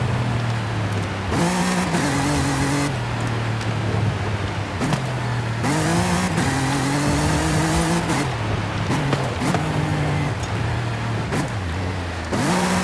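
An engine revs up and down as a vehicle drives fast.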